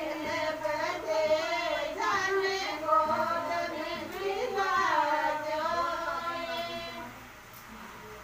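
A woman sings a chant close by.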